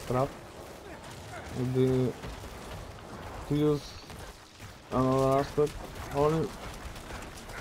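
A man speaks close into a microphone in short bursts.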